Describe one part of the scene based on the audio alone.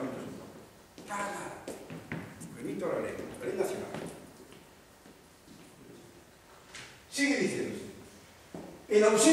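A man lectures through a microphone in an echoing hall.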